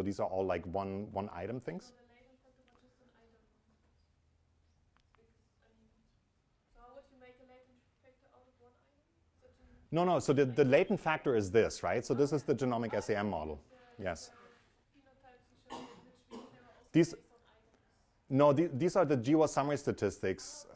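A young man lectures with animation through a microphone, pausing now and then.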